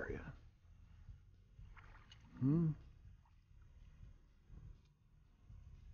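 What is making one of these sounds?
Water laps softly against a kayak's hull.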